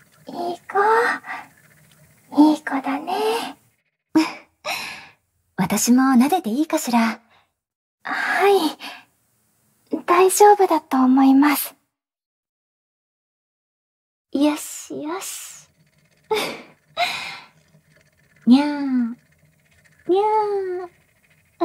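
A young woman speaks softly and playfully, close to the microphone, with little giggles.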